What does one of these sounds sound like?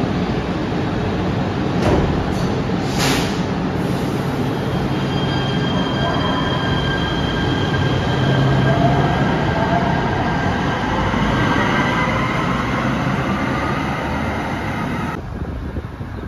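A train rumbles loudly alongside.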